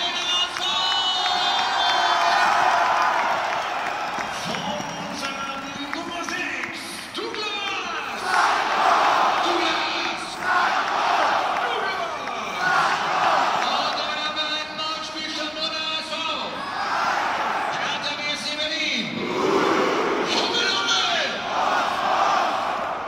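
A large football crowd chants and sings in unison in a roofed stadium.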